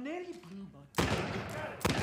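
Gunshots crack loudly and in quick succession.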